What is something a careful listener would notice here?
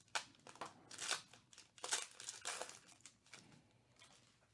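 A foil wrapper crinkles and tears as hands rip open a pack.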